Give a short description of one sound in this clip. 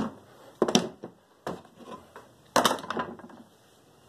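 A clamp knocks against a wooden board.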